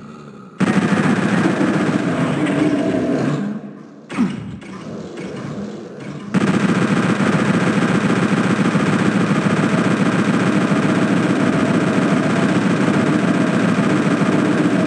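A machine gun fires in rapid, continuous bursts.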